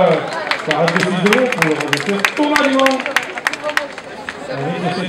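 A crowd of spectators claps.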